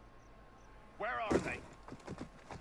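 A body lands with a thud and rustle in a pile of hay.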